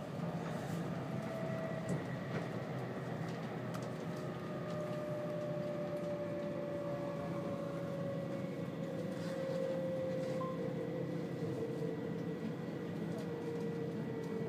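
Train wheels squeal faintly on a curve.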